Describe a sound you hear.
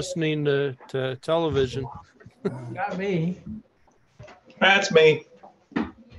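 Men talk and laugh with animation over an online call.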